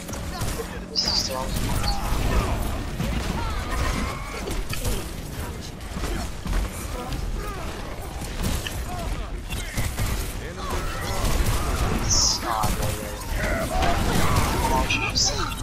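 Blasts and impacts crackle and boom.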